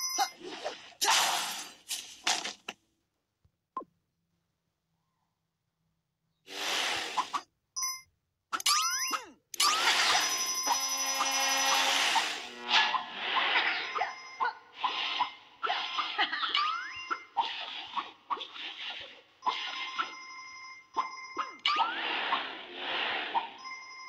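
Whooshing game sound effects rise and fall.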